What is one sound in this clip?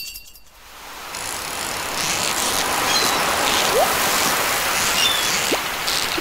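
A fishing reel clicks and whirs as a line is reeled in.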